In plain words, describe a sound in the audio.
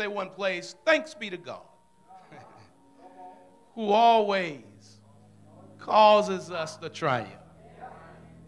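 A man preaches with animation into a microphone, heard through loudspeakers in an echoing hall.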